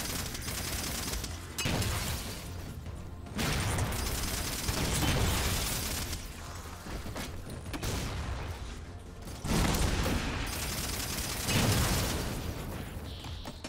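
A futuristic gun fires rapid bursts of shots.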